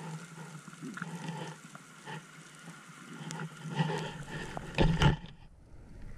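Air bubbles gurgle and rush in bursts underwater.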